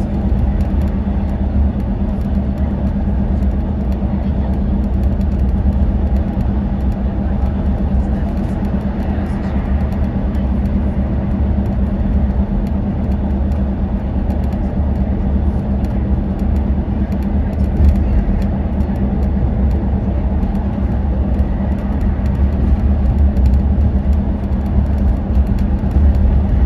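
An engine drones steadily with a low rumble.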